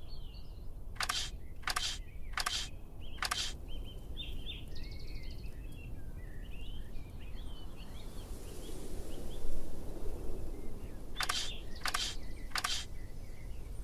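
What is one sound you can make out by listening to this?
Game chips slide into place with short whooshing sweeps.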